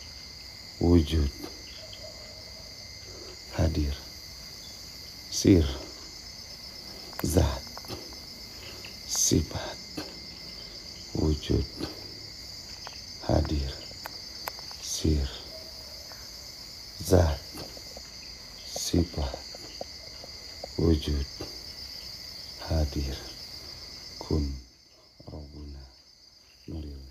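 A man speaks quietly in short phrases close by.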